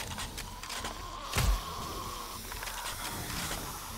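A rifle's bolt clicks as it is reloaded.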